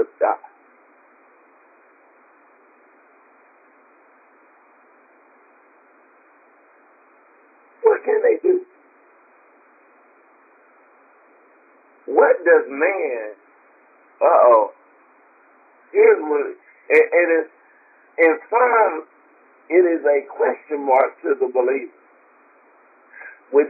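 A woman speaks in short bursts over a thin, phone-like line, with long pauses.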